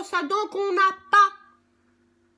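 A middle-aged woman cries out loudly.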